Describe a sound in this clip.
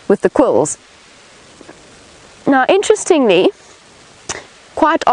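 A young woman speaks close by in short, lively bursts.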